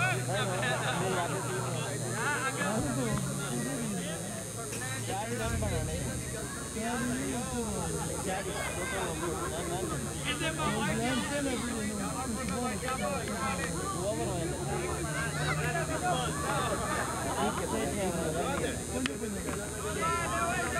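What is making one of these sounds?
Several men talk and call out nearby outdoors.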